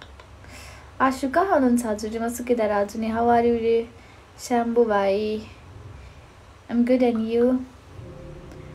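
A young woman speaks calmly and close to a phone microphone.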